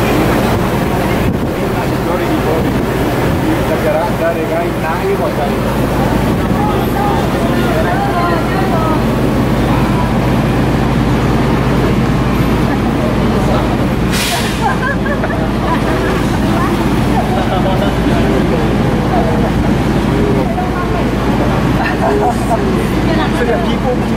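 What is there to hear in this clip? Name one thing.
A bus engine idles steadily nearby.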